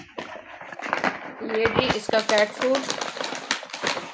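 A plastic bag crinkles as it is lifted from a box.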